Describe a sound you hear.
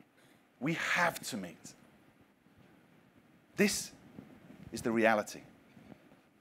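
A man speaks loudly with animation through a microphone in a large hall.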